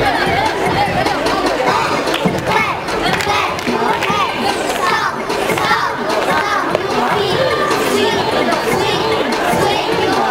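Young girls sing together loudly.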